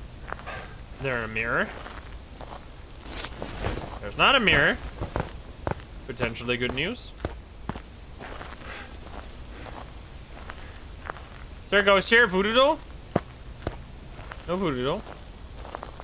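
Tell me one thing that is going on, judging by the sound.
A young man speaks calmly into a close microphone in short bursts.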